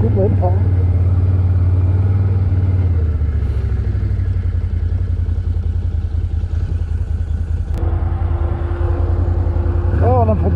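A quad bike engine rumbles steadily while riding.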